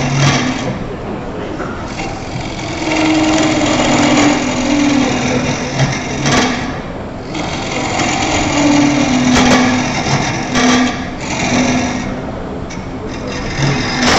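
A chisel scrapes and cuts against spinning wood.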